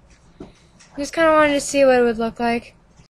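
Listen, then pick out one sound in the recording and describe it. A young girl sings loudly close to the microphone.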